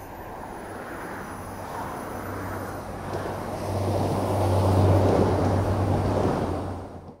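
A diesel train approaches and rumbles past close by, growing louder.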